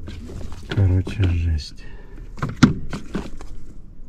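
A coiled cable rattles as a hand handles it.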